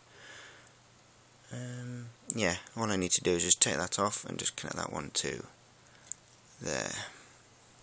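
Metal clips click and cables rustle as they are handled close by.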